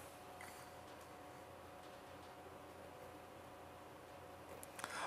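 Metal parts click softly as a hand adjusts them.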